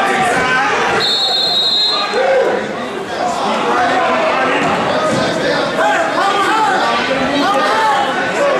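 A man shouts instructions nearby in a large echoing hall.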